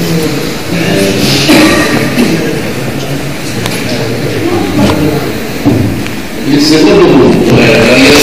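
An elderly man speaks steadily into a microphone, heard through a loudspeaker in an echoing hall.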